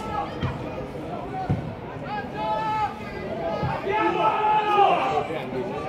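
Men shout to each other across an open field outdoors.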